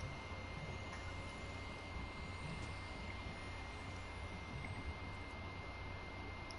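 A game character gulps down a drink in long swallows.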